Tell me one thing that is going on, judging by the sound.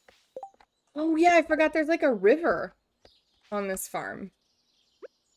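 A young woman talks with animation close to a microphone.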